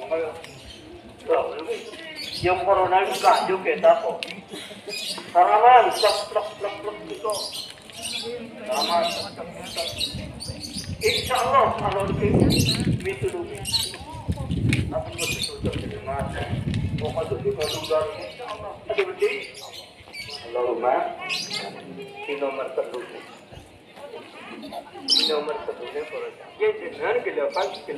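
A man chants in a melodic voice outdoors.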